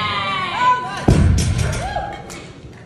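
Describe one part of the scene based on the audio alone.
A heavy barbell drops to the floor with a loud thud.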